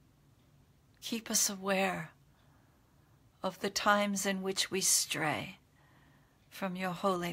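An older woman speaks calmly and slowly, close to a microphone, with pauses.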